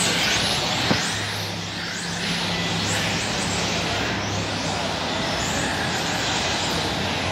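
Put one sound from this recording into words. Small electric motors whine loudly as model cars race around a track, rising and falling in pitch.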